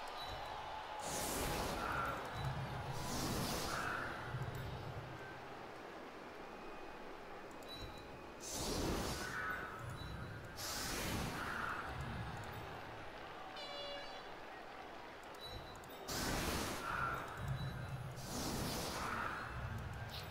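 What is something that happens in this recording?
Magical energy whooshes and crackles several times.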